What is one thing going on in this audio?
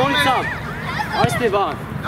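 A football is kicked with a dull thump.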